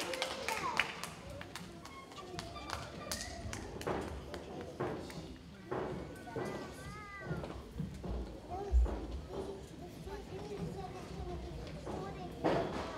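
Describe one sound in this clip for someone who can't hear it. Children chatter softly on a stage.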